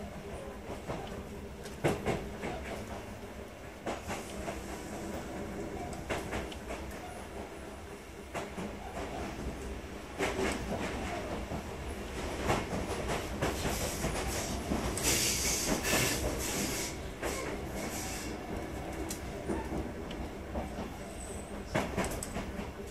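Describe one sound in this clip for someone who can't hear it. A train stands idling with a low steady hum.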